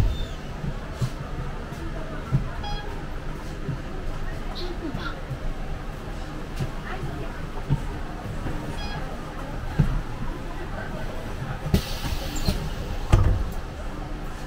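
The bus rattles and thumps over bumps.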